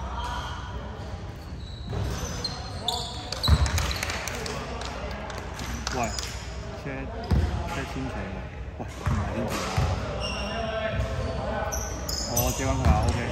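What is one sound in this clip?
A basketball thuds against the floor and the backboard.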